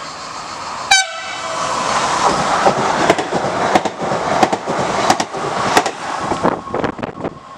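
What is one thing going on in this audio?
A passenger train rushes past at speed with a roaring whoosh.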